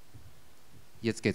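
A man speaks loudly through a microphone in a hall.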